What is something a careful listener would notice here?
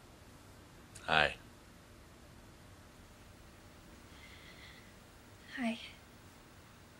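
A young woman laughs softly close by.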